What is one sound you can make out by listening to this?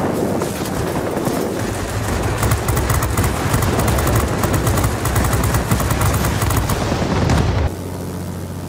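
Gunfire rattles and explosions boom.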